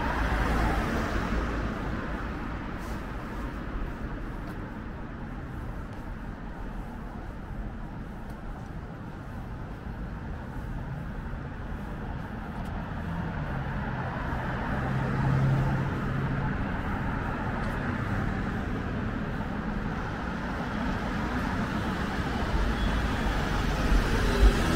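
Traffic rumbles steadily along a street.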